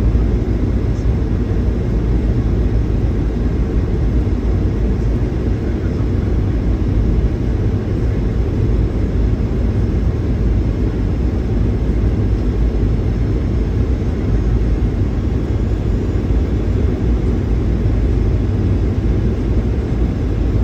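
An airplane cabin hums with a steady, deep engine roar.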